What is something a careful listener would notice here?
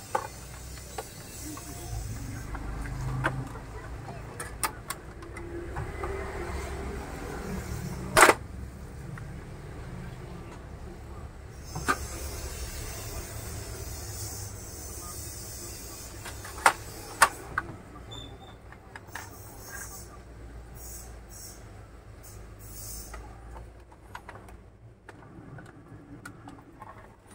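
Plastic parts of a printer clatter and click as hands take it apart.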